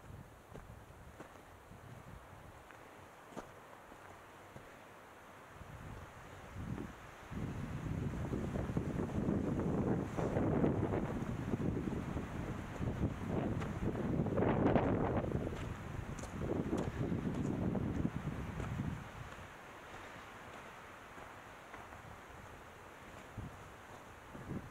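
Bicycle tyres crunch and rattle over a rocky dirt trail.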